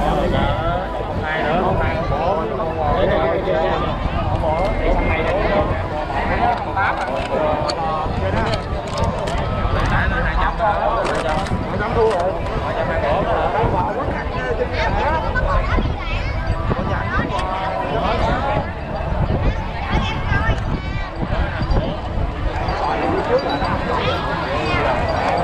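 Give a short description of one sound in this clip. A large outdoor crowd chatters and calls out loudly throughout.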